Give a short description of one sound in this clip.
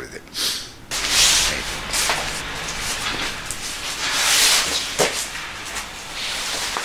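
A foam sleeping mat rustles as it is unfolded and laid down.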